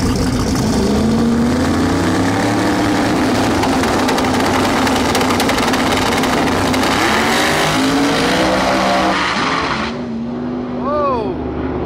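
A race car engine revs up and roars away into the distance.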